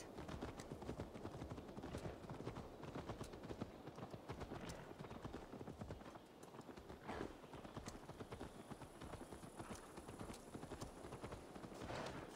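Horse hooves clatter steadily on a dirt path.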